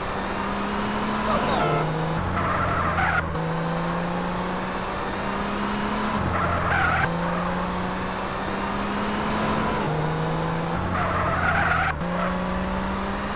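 A sports car engine revs hard and shifts gears.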